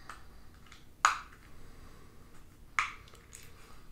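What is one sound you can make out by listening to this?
Small plastic pieces click and snap together.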